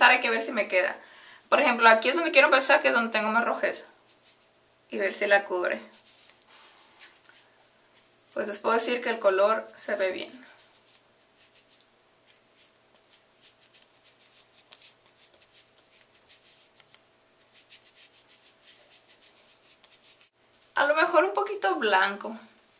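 A cotton pad softly rubs and pats against skin.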